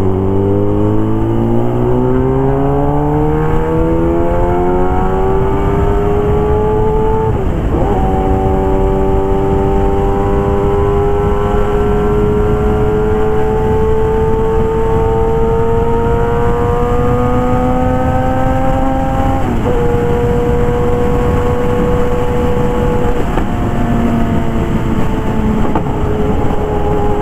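A motorcycle engine roars, rising in pitch as it speeds up and dropping briefly at each gear change.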